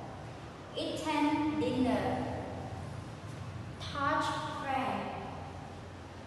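A young woman speaks clearly and slowly, as if reading out.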